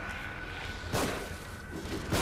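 A pistol shot cracks.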